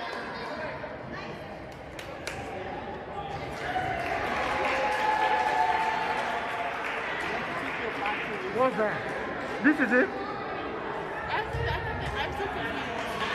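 A volleyball thumps off a player's hands.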